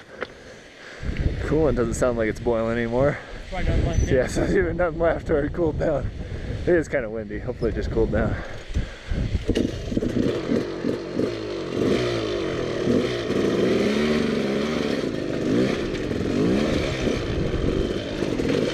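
A dirt bike engine starts and revs up and down loudly, close by.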